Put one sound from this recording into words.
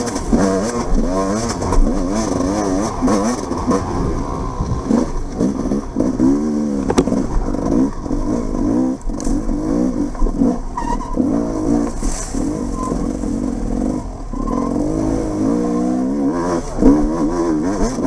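Tyres roll and crunch over a dirt trail.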